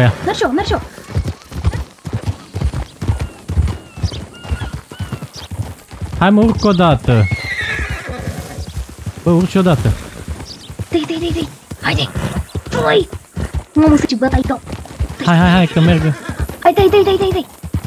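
Horse hooves thud in a steady rhythm on a dirt track.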